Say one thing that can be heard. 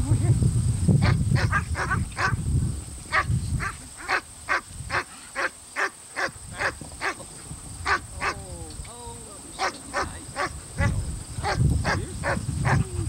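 A puppy yelps and whimpers repeatedly, close by.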